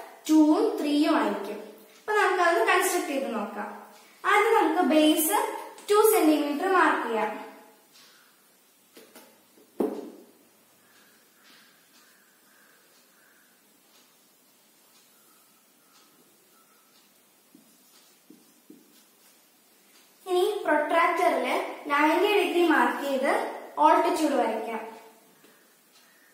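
A young girl speaks calmly and clearly into a close microphone.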